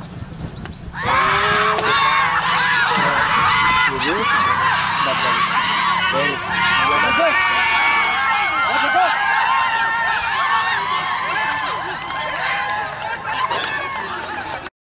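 Young men shout and cheer excitedly outdoors.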